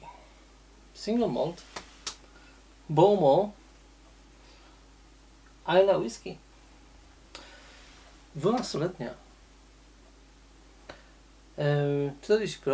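A middle-aged man speaks calmly and close by, in short phrases with pauses.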